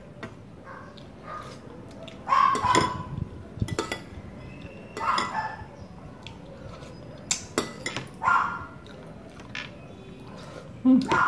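A woman chews and slurps food close by.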